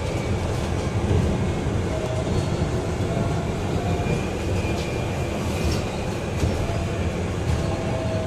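Bus panels rattle and clatter faintly.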